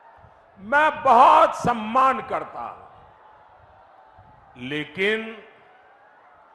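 An elderly man speaks forcefully into a microphone over loudspeakers, with pauses.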